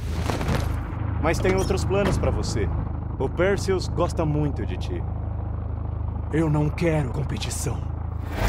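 A second man speaks from outside a vehicle.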